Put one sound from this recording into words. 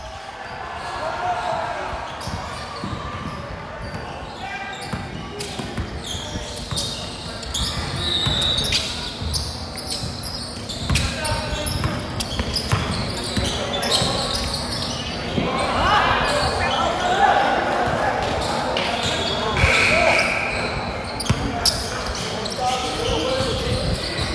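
Young men shout to each other in a large echoing gym.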